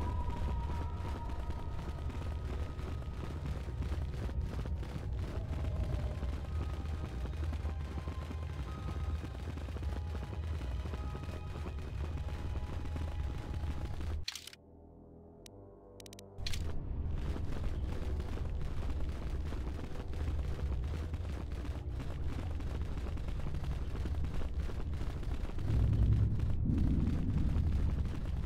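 Footsteps tread steadily on rocky ground.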